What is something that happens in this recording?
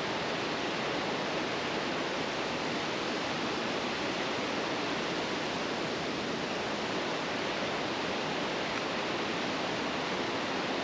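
A river rushes steadily over rapids below.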